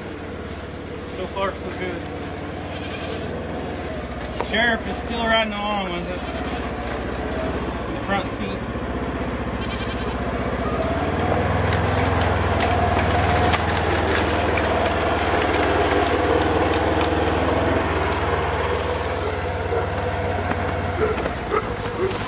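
A utility vehicle engine idles and hums steadily nearby.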